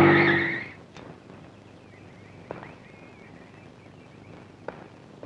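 A car door clicks open and thuds shut.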